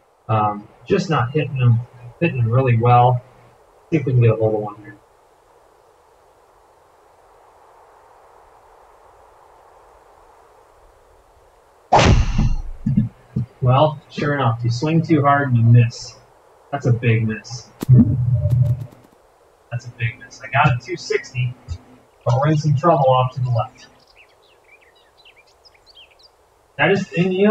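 A man speaks calmly and casually, close by.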